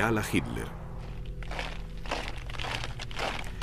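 Boots march in step on pavement.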